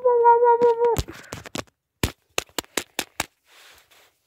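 A small plastic figure clicks and taps as a hand handles it.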